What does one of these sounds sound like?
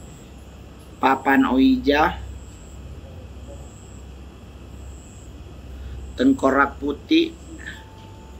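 A man speaks calmly and briefly, close by, with long pauses.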